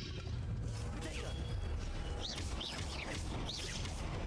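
Spells zap and whoosh in a fight.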